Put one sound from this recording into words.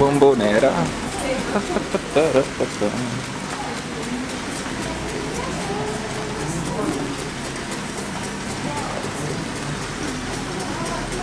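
A lawn sprinkler sprays water with a soft, steady hiss.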